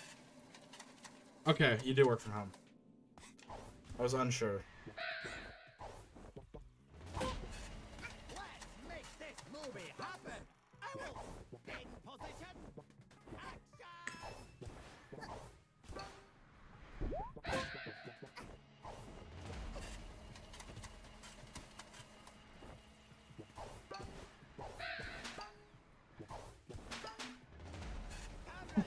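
Upbeat video game music plays.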